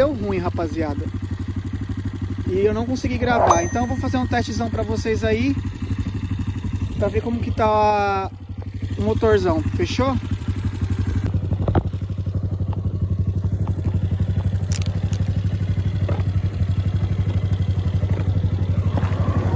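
A motorcycle engine idles with a steady, low throb.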